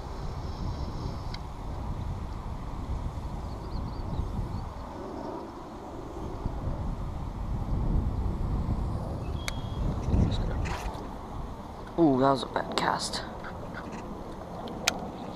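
Wind rumbles steadily across the microphone outdoors.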